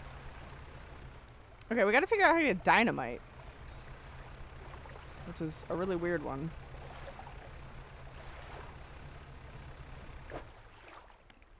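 A boat engine hums low and steady.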